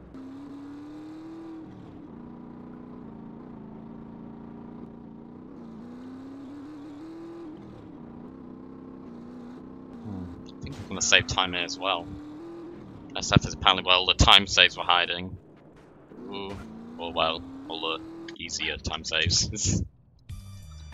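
A motorcycle engine hums and rises and falls in pitch as it speeds along.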